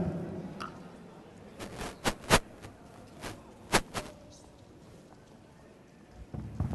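Horses' hooves thud on soft ground.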